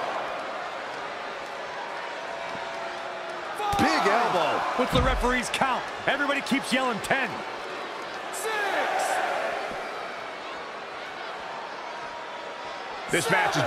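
A large crowd cheers and roars in a big arena.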